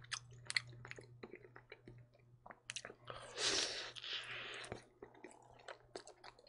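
A man chews and smacks his lips close to a microphone.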